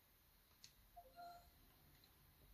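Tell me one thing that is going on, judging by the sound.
A short electronic chime plays from a small speaker.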